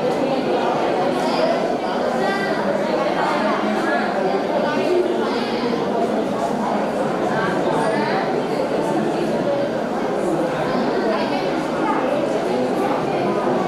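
A young man speaks steadily into a microphone over a loudspeaker, in an echoing room.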